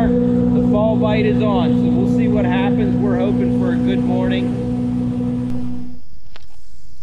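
A boat's outboard motor hums steadily.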